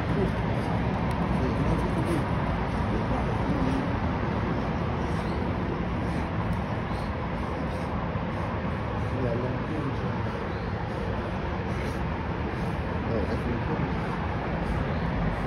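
A dog snarls and growls while fighting.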